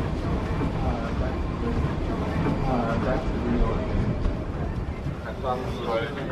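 Suitcase wheels roll across a hard floor.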